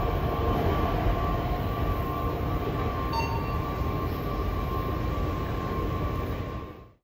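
A subway train rumbles into a station, echoing in a large hall.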